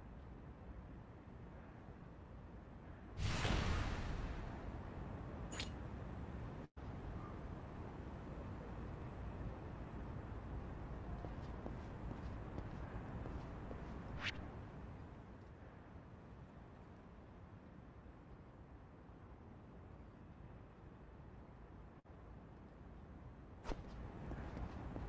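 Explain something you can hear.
Footsteps tap along a paved street.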